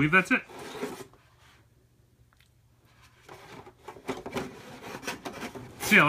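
A plastic insert knocks against a cardboard box.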